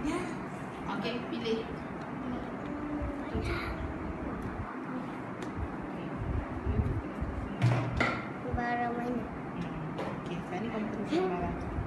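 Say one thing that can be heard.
A woman speaks calmly and kindly nearby.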